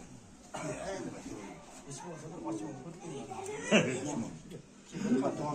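Middle-aged and elderly men talk with each other close by.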